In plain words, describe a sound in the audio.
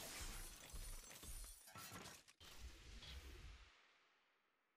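A deep whoosh and boom sound out.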